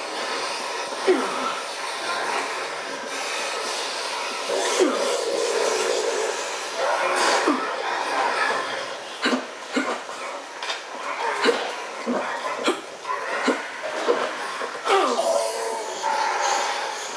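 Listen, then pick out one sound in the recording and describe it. Heavy blows thud and smack against bodies in a brawl.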